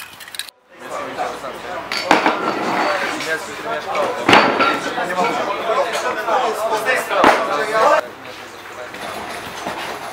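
A crowd of men chatter nearby outdoors.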